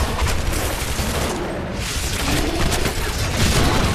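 A fire roars and explodes nearby.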